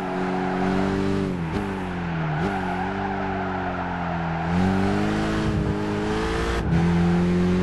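Tyres screech through a tight corner.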